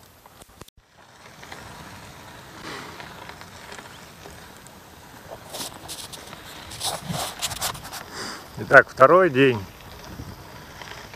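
Bicycle tyres roll over gravel.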